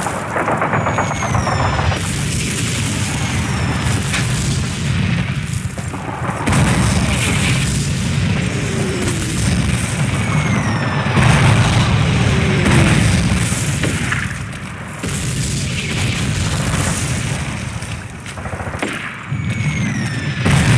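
Footsteps crunch over rubble and gravel.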